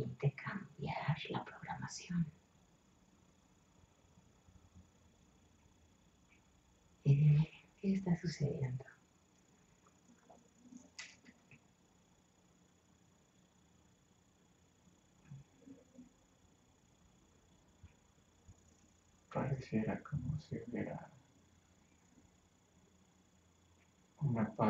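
A woman speaks calmly and softly, close by, in short phrases with pauses.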